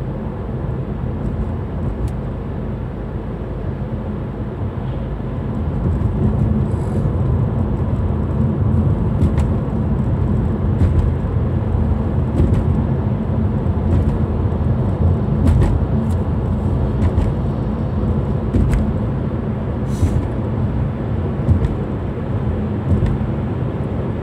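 Tyres roar on the road surface, growing louder as the car speeds up.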